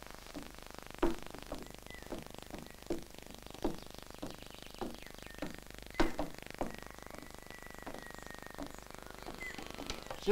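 Footsteps thud on wooden boards.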